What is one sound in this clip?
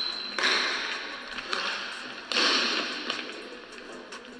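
A basketball bounces on a hard court in an echoing hall.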